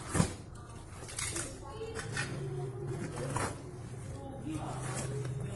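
Hands tear open a cardboard box.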